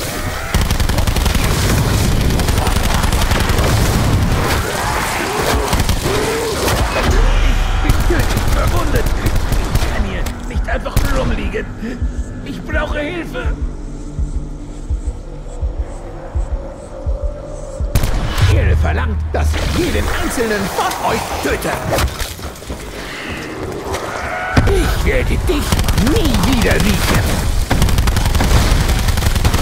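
Gunfire blasts in rapid bursts.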